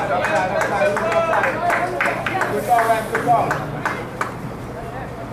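Young spectators nearby shout and chatter excitedly outdoors.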